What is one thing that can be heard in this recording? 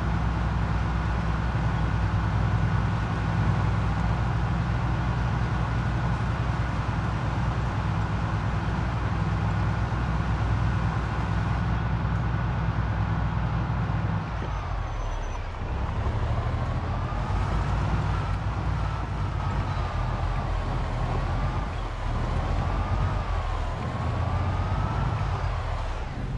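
A van engine hums steadily as the van drives, slowing and then revving up and down.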